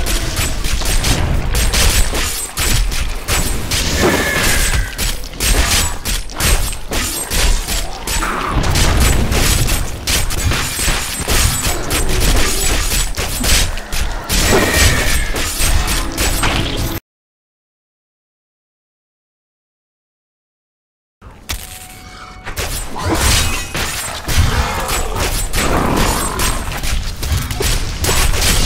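Game combat sounds of spells, blasts and monster cries clash rapidly and loudly.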